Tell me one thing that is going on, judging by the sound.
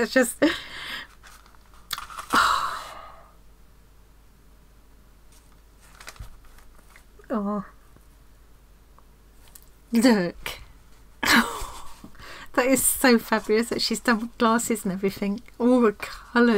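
Paper rustles and slides as cards are handled.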